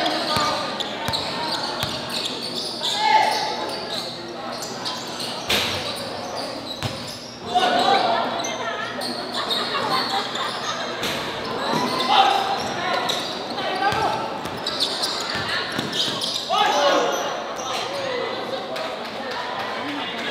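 A large crowd cheers and shouts in an echoing gym.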